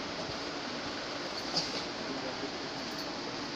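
Soft fabric rustles as it is handled and folded.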